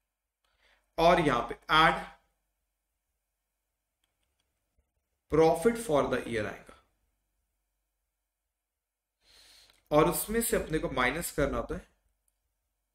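A man speaks calmly and clearly into a close microphone, in short phrases with pauses.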